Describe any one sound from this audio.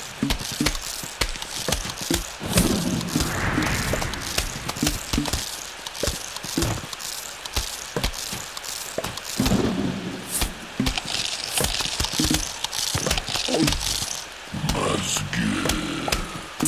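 Short electronic clicks and pops sound repeatedly.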